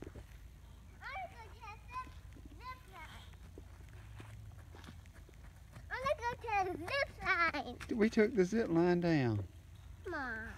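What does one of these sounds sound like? A young girl talks excitedly close by, outdoors.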